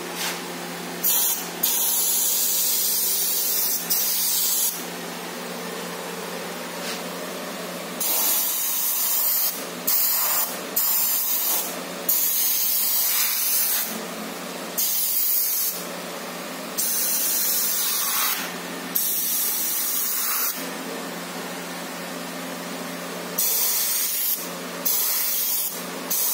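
An airbrush hisses in short bursts of spray.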